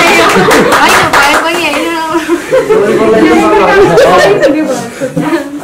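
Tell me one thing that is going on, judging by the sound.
Young women laugh loudly close to a microphone.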